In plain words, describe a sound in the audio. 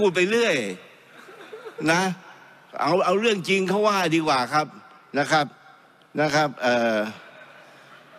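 An elderly man speaks firmly into a microphone.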